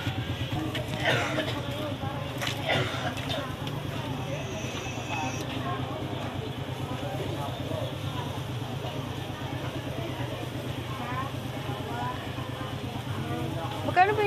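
Meat sizzles on a charcoal grill.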